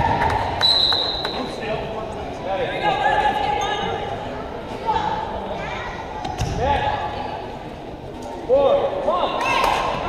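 A basketball bounces on the wooden floor.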